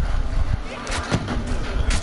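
A fiery blast roars close by.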